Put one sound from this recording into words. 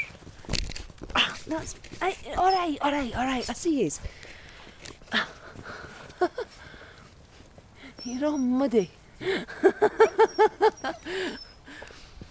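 Puppies whine and yelp in short, high cries close by.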